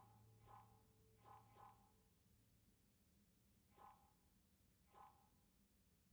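Short electronic blips sound.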